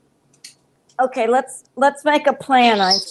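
A parrot talks in a mimicking, voice-like chatter.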